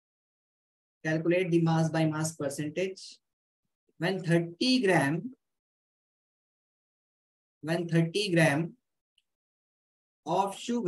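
A man speaks calmly and explains, close to a microphone, in short phrases with pauses.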